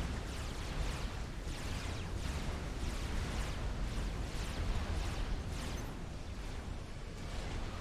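Laser weapons fire in quick repeated bursts.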